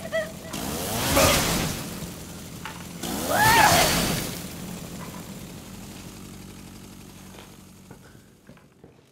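A chainsaw engine roars.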